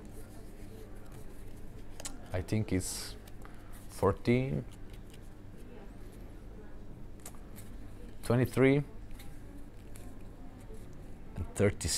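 Playing cards riffle and flick softly in a man's hands.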